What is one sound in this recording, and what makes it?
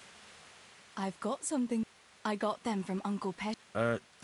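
A young woman speaks calmly, close by.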